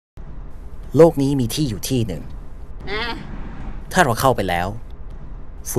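A young woman speaks softly and cheerfully.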